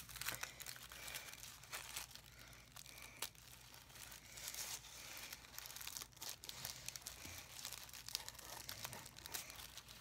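Scissors snip through thin paper.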